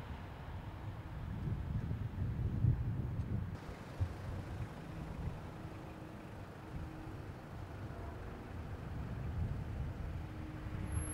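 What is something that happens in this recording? A four-wheel drive vehicle drives past.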